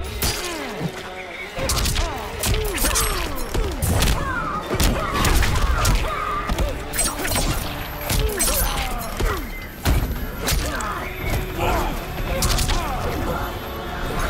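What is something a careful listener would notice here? Punches and kicks land with heavy thuds in a fast fight.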